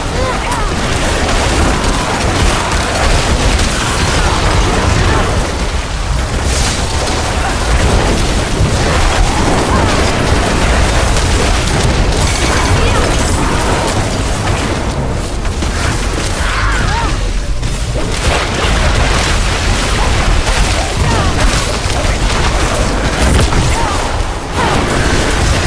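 Magic spells crackle and burst loudly in a fast game battle.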